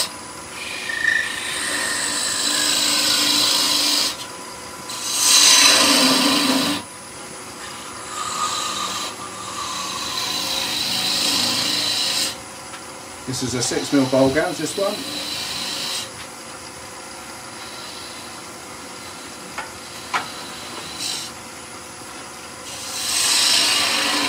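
A gouge scrapes and hisses against spinning wood in bursts.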